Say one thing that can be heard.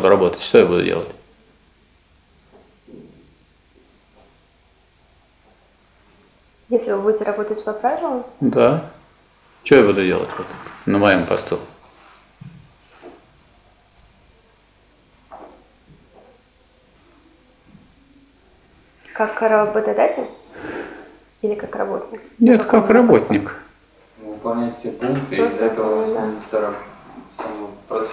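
An elderly man speaks briefly in reply.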